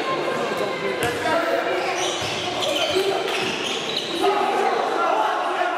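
Sneakers squeak on a sports hall floor.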